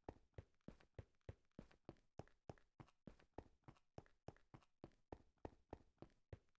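Footsteps crunch quickly and evenly on stone.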